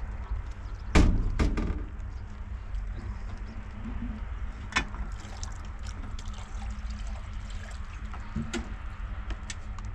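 A metal pot clanks and knocks.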